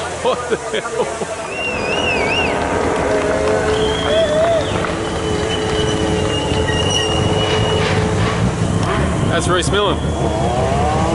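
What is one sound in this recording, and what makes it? A rally car engine revs and whines as it climbs past.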